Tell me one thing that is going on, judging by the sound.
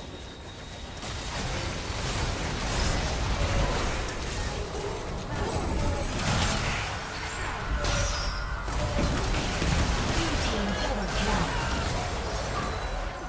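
Magic blasts crackle and boom in a busy fight.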